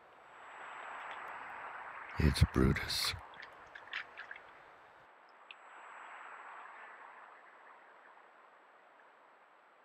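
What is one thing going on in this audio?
A bear rustles through leafy plants close by.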